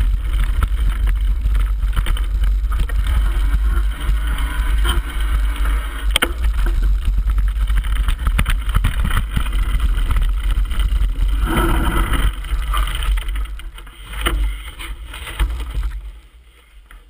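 Bicycle tyres rattle over a rough gravel trail.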